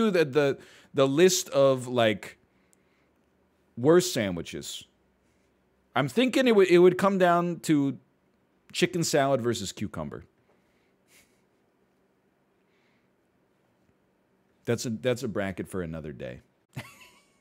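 A man talks calmly and close to a headset microphone, in short bursts with pauses.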